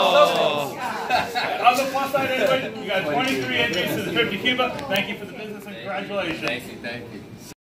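A middle-aged man talks cheerfully nearby.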